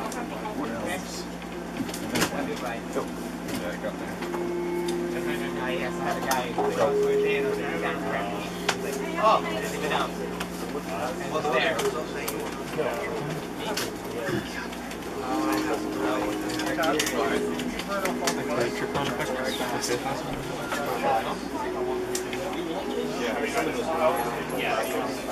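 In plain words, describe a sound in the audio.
Playing cards shuffle and riffle in hands.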